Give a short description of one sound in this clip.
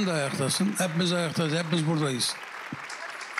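A middle-aged man sings into a microphone.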